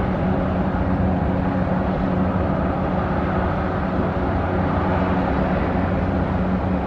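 A ship's engine hums steadily and deeply.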